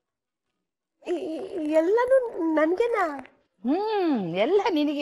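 A middle-aged woman speaks close by in a lively, sing-song voice.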